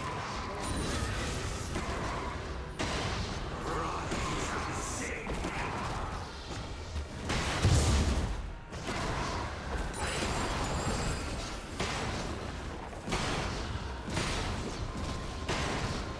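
Magic spells whoosh and crackle in quick bursts.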